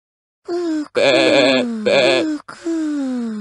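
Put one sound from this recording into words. A cartoon sheep bleats with a wavering voice.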